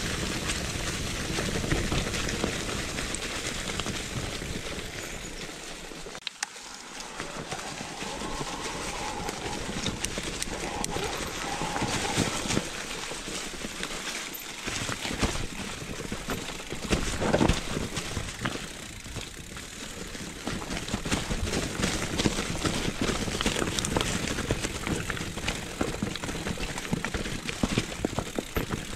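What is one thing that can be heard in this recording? Wind rushes past, loud and steady.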